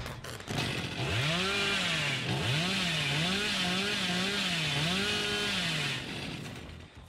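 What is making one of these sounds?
A chainsaw engine revs up and down loudly.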